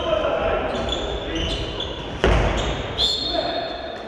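A ball bounces on the floor.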